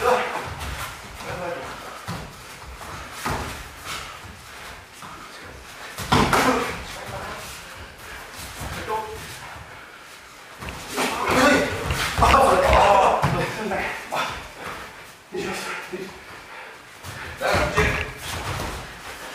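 Punches and kicks thud against padded gear.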